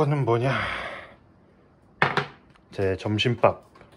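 A plastic container is set down on a hard countertop with a light knock.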